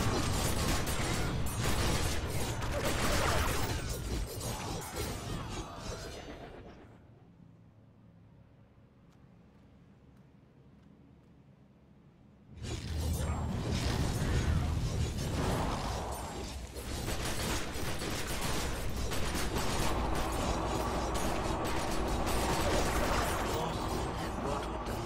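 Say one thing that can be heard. Magic spells burst and crackle loudly in a game battle.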